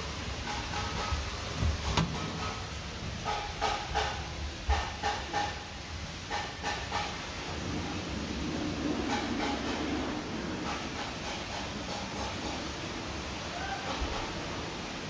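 Fingers tap and click against a hard panel.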